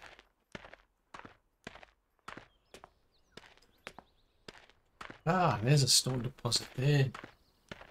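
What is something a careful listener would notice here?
Footsteps crunch steadily over loose stones.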